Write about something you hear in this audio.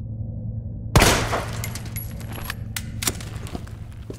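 A plaster arm cracks and breaks off a statue with a sharp snap.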